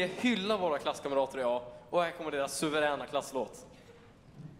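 A man speaks into a microphone over loudspeakers in a large hall.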